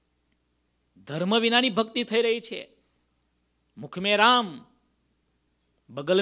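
A middle-aged man sings in a drawn-out, melodic voice into a close microphone.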